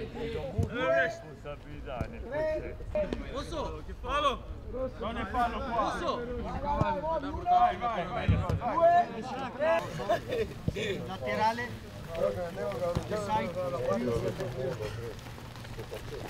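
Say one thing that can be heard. Several men talk and laugh nearby.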